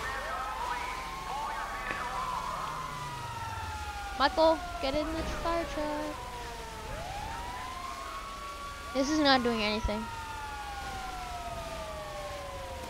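A water cannon sprays with a steady hiss.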